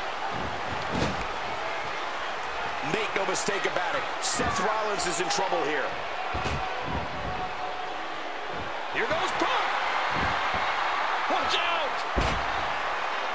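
Bodies thud hard onto a wrestling ring mat.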